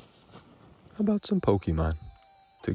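A handheld game console plays a short electronic startup chime.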